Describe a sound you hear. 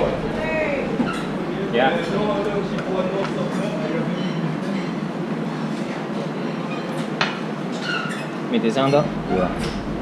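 Small ceramic cups clink as they are picked up and set down.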